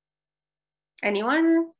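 A young woman speaks briefly over an online call.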